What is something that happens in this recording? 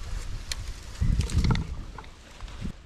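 Dry leaves crunch underfoot.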